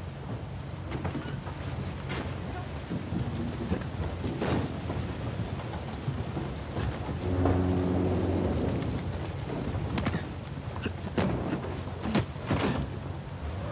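Footsteps scuff and tap on stone.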